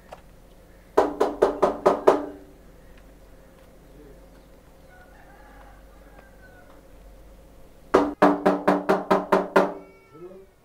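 A man knocks repeatedly on a door.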